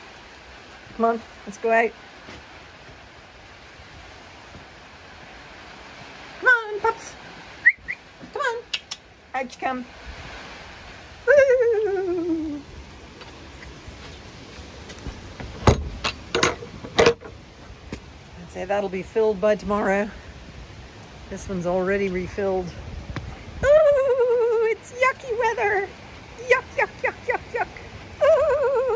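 Small dogs bark and yelp excitedly.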